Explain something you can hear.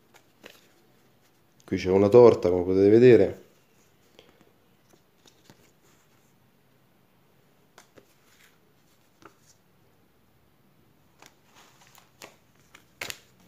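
Stiff paper cards flick and tap as hands sort through them.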